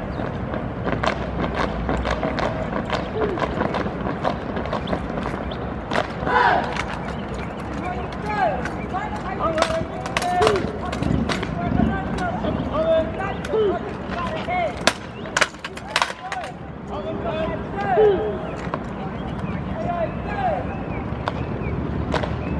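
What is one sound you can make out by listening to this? Boots stamp on pavement in unison.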